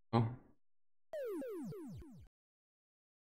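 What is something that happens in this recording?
A falling warbling jingle from an arcade maze game plays as the player loses a life.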